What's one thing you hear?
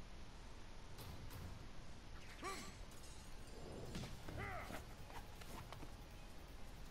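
Sharp whooshes and thuds of fast fighting moves.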